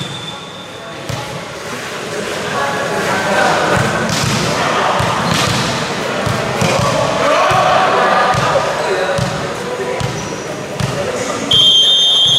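Sneakers squeak and thud on a hard court.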